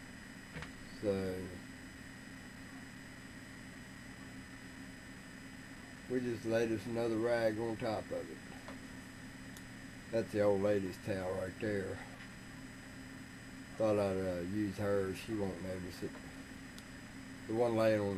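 A man talks calmly nearby, in short bursts.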